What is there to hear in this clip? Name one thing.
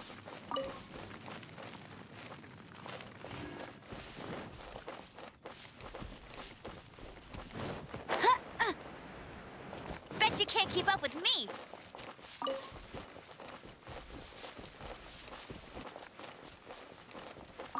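Footsteps run over grass and dirt.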